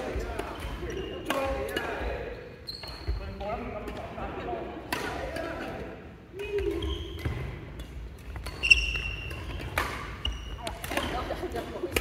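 Shoes squeak sharply on a wooden sports floor.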